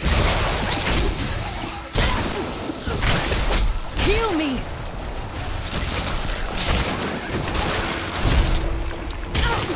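Magic spells crackle and zap in quick bursts.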